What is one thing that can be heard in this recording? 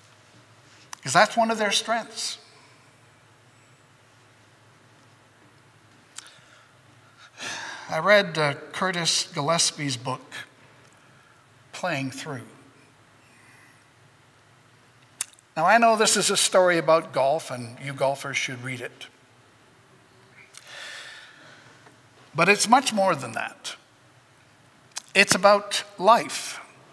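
An older man speaks calmly into a microphone in a slightly echoing room.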